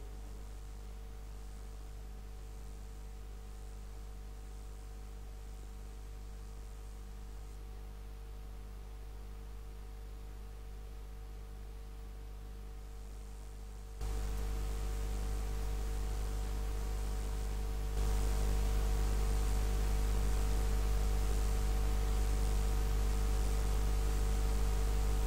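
Water laps gently against a ship's hull.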